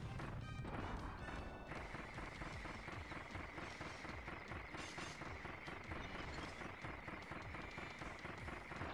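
Fast, beat-driven video game music plays.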